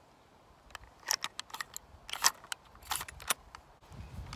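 Cartridges click into a rifle's loading gate.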